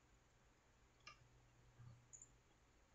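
A plastic part clicks softly as it is handled.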